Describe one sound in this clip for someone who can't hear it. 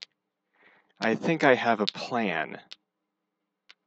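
A young man speaks briefly and casually into a nearby microphone.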